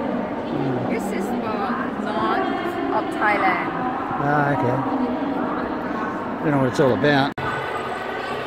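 A woman talks close by with animation.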